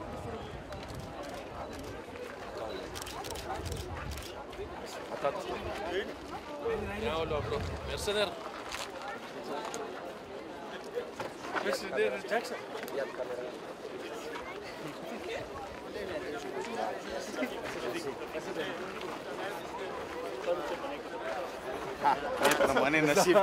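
A crowd of men talks and murmurs all around outdoors.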